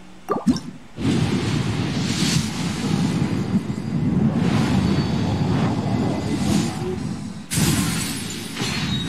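A shooting star whooshes and roars across the sky.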